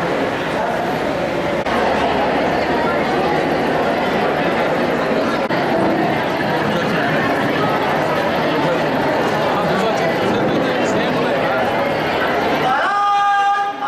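A large crowd of young people chatters loudly in a hall.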